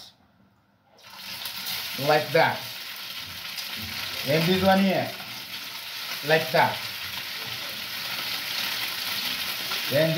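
Meat sizzles in a hot frying pan.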